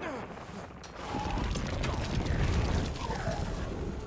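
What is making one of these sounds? Magic spell effects whoosh and burst during a fight.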